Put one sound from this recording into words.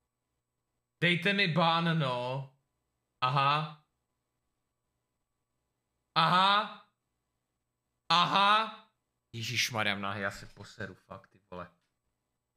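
A young man talks into a close microphone in short bursts, with pauses between.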